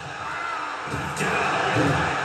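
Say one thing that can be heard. A heavy body slams onto a wrestling ring mat with a loud thud.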